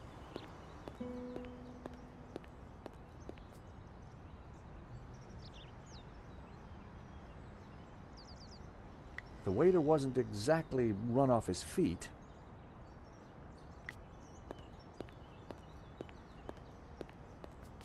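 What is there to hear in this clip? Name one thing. Footsteps tap lightly on pavement.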